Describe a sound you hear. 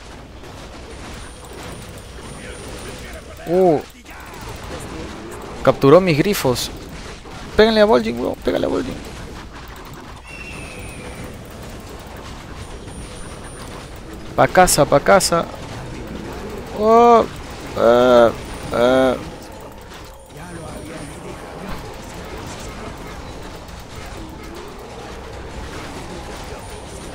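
Weapons clash and spells crackle in a busy battle.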